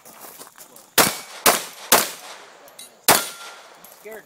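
A pistol fires loud shots in quick bursts outdoors.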